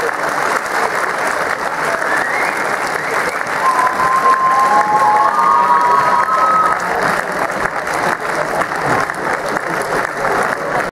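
A large crowd of young people cheers and chatters loudly in an echoing hall.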